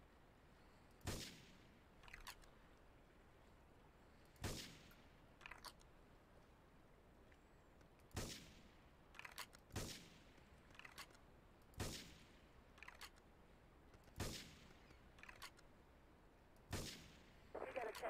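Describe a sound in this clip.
A sniper rifle fires single loud shots with a short echo.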